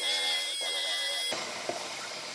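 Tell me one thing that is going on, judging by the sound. A pneumatic sander whines against metal.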